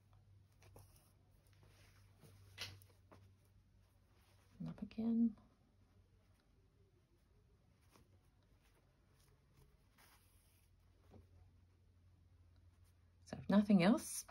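Thread pulls through fabric with a soft rasp.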